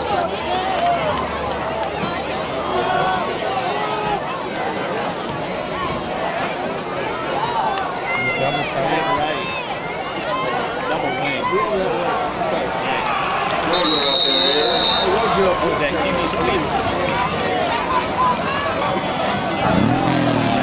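A crowd of men and boys talks and shouts outdoors.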